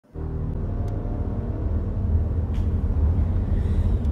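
A young woman exclaims in surprise close to a microphone.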